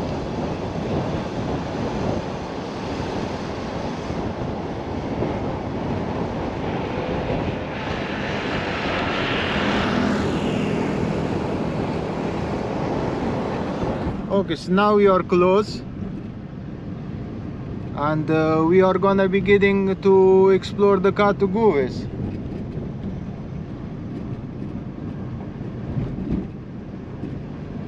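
A car drives along a road with a steady rumble of tyres.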